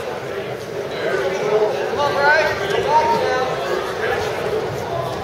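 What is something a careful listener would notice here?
Spectators shout and cheer.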